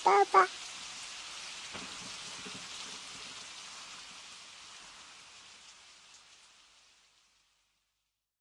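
Water from a shower pours down steadily and slowly fades.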